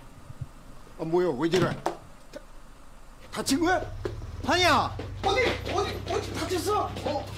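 A man exclaims in surprise.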